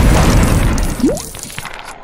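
Wooden objects smash apart with a crash.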